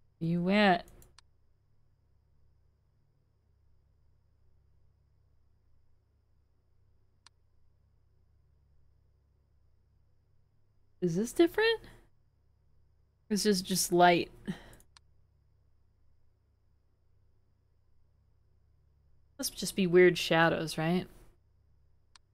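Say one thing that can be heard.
A young woman speaks in short bursts through a microphone.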